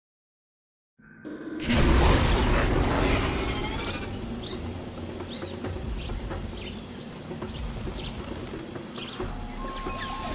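Birds chirp in a lush jungle.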